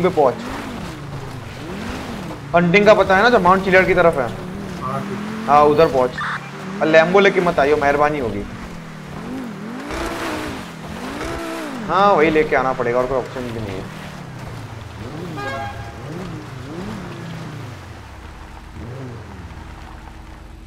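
A sports car engine revs up and down.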